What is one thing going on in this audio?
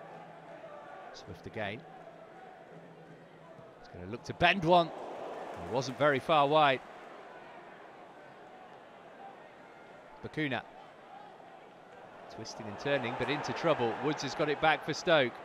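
A large stadium crowd murmurs and cheers outdoors.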